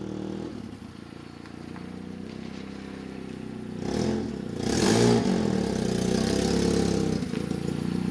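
A car engine hums as a car drives up and stops.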